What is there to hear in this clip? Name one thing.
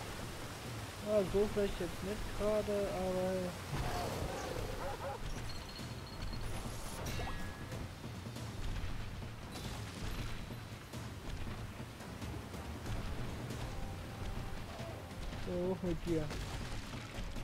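A huge dinosaur roars with deep, growling cries.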